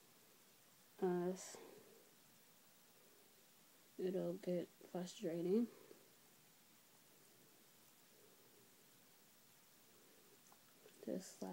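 A young woman speaks briefly and casually close by.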